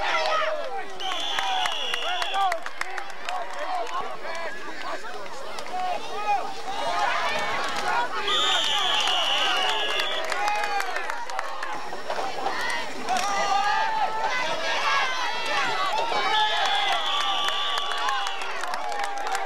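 A referee's whistle blows shrilly several times.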